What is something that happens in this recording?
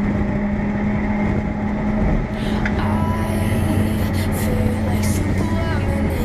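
A race car engine roars loudly at high revs from inside the cabin.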